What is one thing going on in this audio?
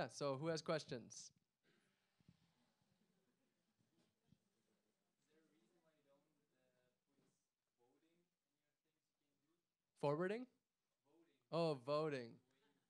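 A man speaks calmly into a microphone, heard through loudspeakers, with pauses.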